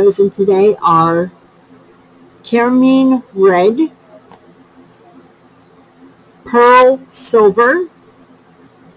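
A young woman speaks with animation close to a microphone, in short bursts with pauses.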